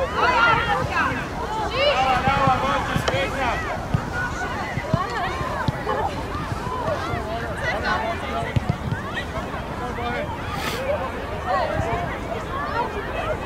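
Many young women shout and call out to each other across an open outdoor field.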